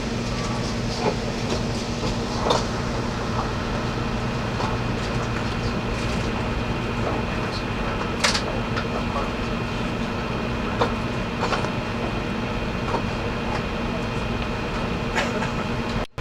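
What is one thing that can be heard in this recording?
Train wheels click and clatter over rail joints.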